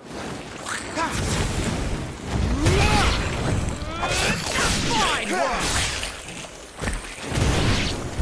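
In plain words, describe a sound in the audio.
Fiery blasts crackle and boom.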